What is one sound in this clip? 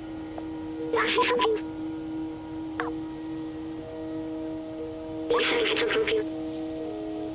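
A small robot chirps in quick electronic beeps.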